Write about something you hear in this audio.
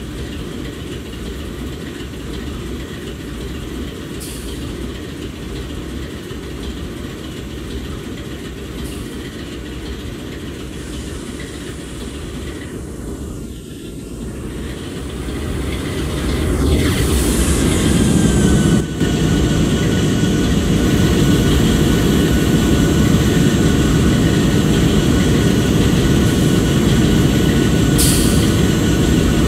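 A diesel locomotive engine idles with a steady low rumble that grows louder.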